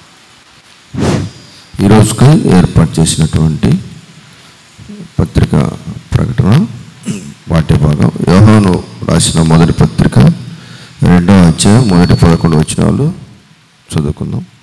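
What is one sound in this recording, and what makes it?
A man reads aloud into a microphone, heard through loudspeakers in an echoing room.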